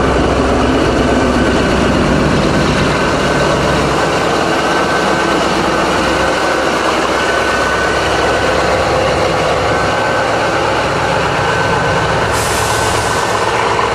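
A diesel locomotive engine rumbles loudly close by.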